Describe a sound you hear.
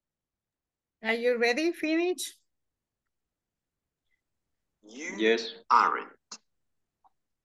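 A woman speaks through an online call in two short bursts.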